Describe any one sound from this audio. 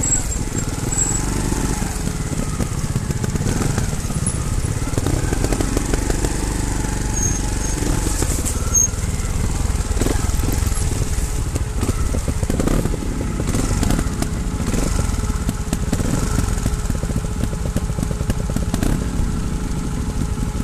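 A dirt bike engine putters and revs close by.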